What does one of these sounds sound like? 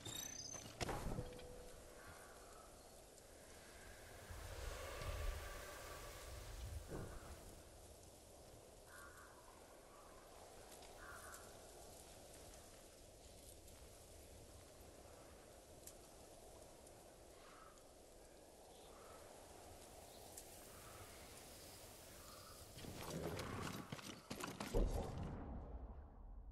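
Wind blows steadily through grass outdoors.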